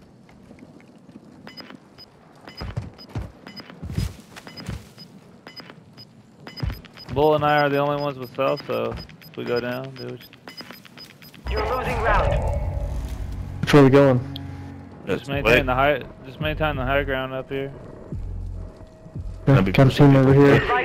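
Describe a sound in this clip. Footsteps crunch quickly on dry ground.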